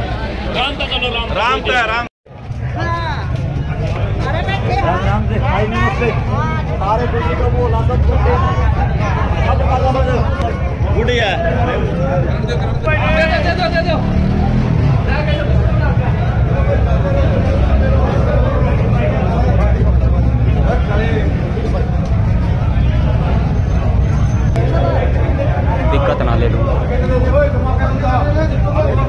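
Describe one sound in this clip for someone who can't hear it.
A crowd of men talk and shout over one another nearby, outdoors.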